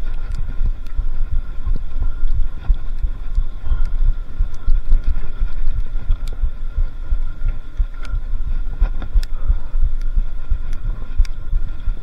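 Bicycle tyres crunch and rattle over a gravel track.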